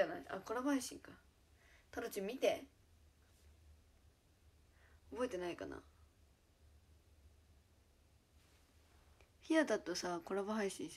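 A young woman talks close to the microphone, in short bursts with pauses.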